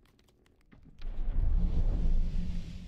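A burst of fire roars loudly.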